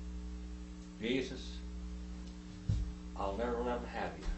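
A middle-aged man speaks calmly into a nearby microphone.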